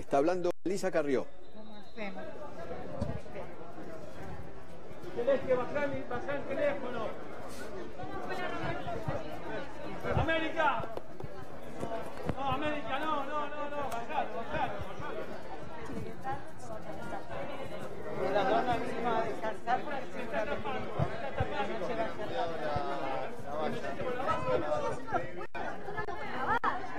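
A crowd of people talk and shout over one another close by.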